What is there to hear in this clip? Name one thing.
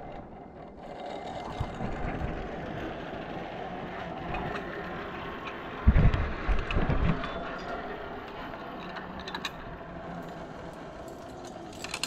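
A zipline trolley whirs along a steel cable.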